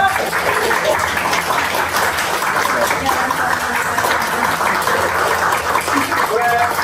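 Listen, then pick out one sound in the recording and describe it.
A group of people clap their hands steadily.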